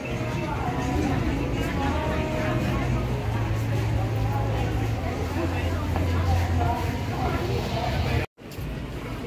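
Many people chatter in a busy crowd nearby.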